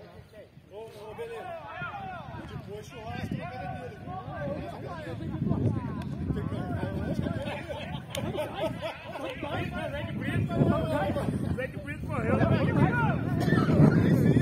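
Men shout and call out to each other outdoors across an open field.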